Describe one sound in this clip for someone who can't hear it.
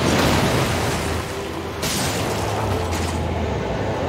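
Metal armour clanks as a knight moves.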